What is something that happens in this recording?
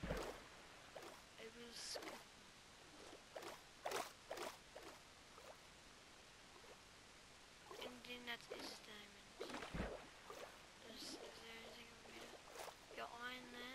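Water splashes and gurgles softly underwater.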